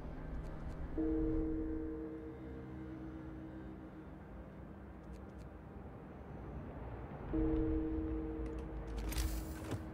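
A game's interface chimes with a short tone.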